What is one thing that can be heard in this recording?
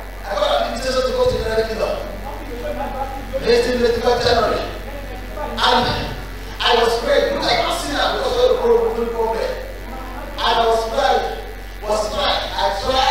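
A man preaches forcefully into a microphone, his voice ringing through a large hall.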